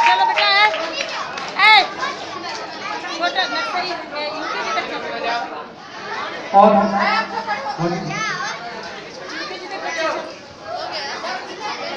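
Children shout and squeal excitedly close by.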